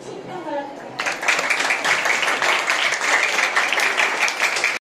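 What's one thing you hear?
A small crowd applauds.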